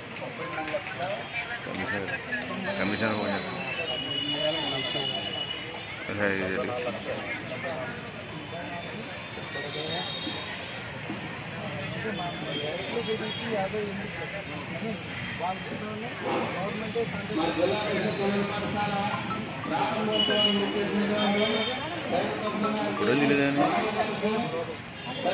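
A group of men talk among themselves nearby.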